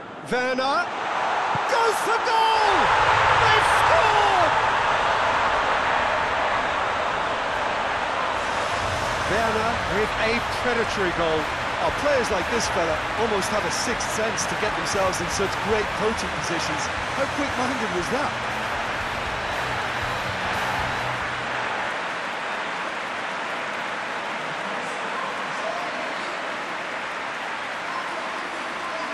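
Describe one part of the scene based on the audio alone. A large crowd roars and cheers loudly in a stadium.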